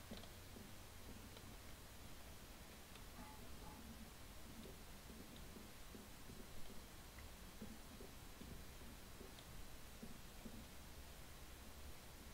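Footsteps thud softly on wooden floorboards.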